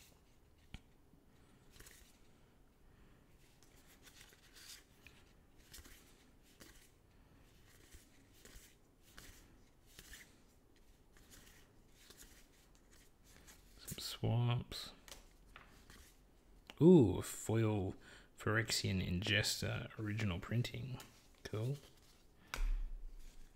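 Playing cards slide and flick softly against each other as they are flipped through.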